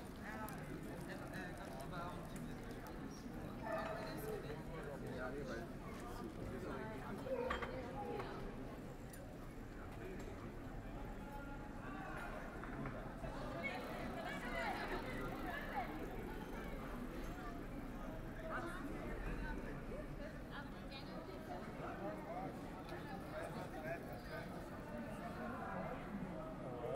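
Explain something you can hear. Many people chatter in the background outdoors.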